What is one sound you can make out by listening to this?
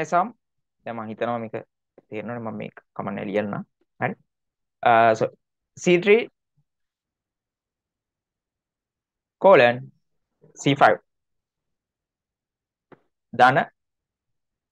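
A young man speaks calmly into a close microphone, explaining in short phrases with pauses.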